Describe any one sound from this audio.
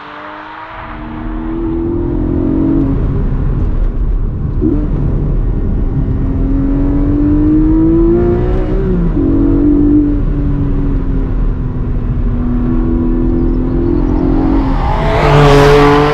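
A sports car engine roars loudly from inside the cabin as the car accelerates.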